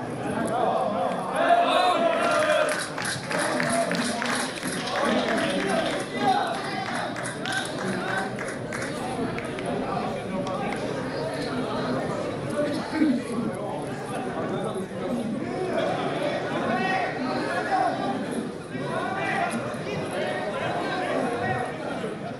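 Spectators chatter and call out nearby, outdoors.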